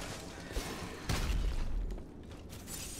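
A fiery blast bursts with a heavy boom.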